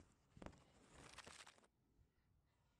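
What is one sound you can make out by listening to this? Handling noise rustles loudly close to the microphone.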